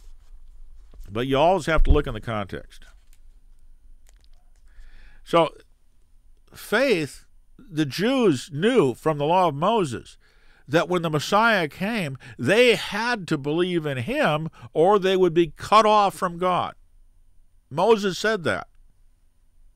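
An elderly man speaks calmly and thoughtfully into a close microphone.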